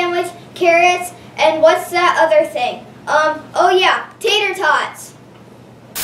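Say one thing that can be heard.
A young boy speaks with animation close to a microphone.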